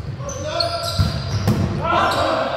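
A volleyball is spiked with a sharp slap in a large echoing gym.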